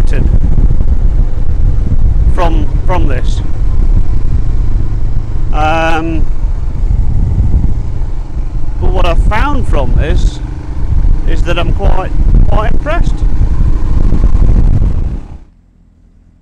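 A motorcycle engine rumbles steadily.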